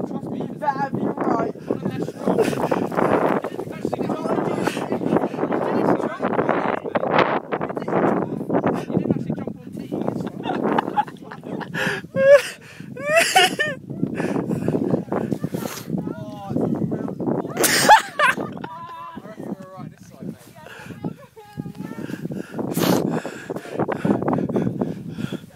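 Young men and a young woman laugh and shout close by.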